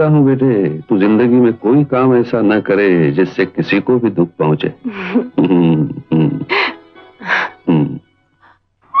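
An elderly man speaks warmly up close.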